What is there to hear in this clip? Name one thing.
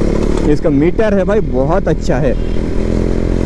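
A motorcycle engine revs up and down sharply several times.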